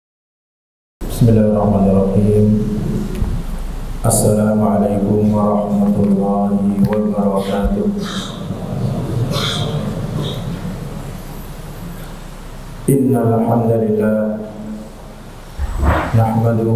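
A man speaks calmly and close into a headset microphone.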